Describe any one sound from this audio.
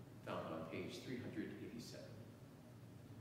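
A man speaks at a distance in a reverberant room.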